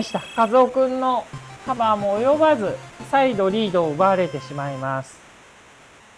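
Eight-bit video game music plays.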